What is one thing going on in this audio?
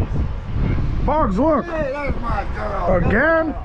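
A dog whines and yelps.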